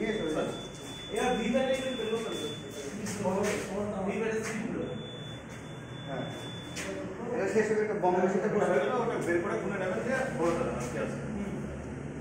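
Several men talk over one another with animation, close by.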